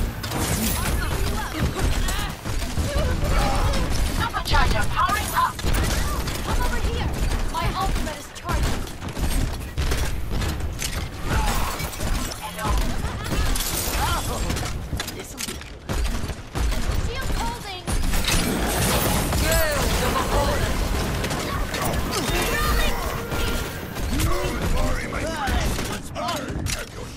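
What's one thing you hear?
A video game grenade launcher fires in bursts.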